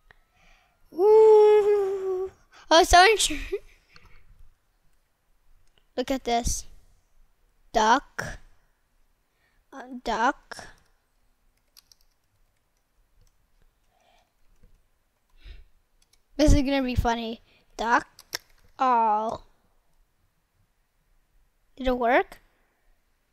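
A young boy talks with animation close to a microphone, in short bursts.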